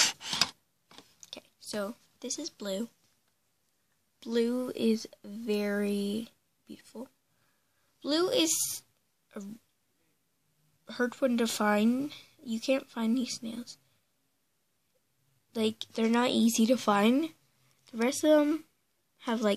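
A young girl talks close to the microphone in short bursts.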